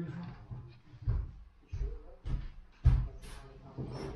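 Bare footsteps thud on a floor.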